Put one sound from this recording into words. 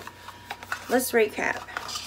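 Cardboard packaging rustles in a woman's hands.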